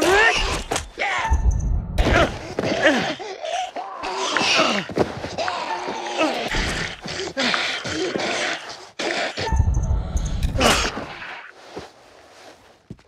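A young man pleads and shouts in panic.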